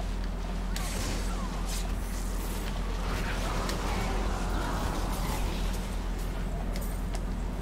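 Icy blasts crackle and whoosh in rapid bursts.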